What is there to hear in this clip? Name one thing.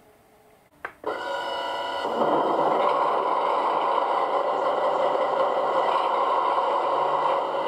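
A model diesel locomotive's engine hums and drones steadily.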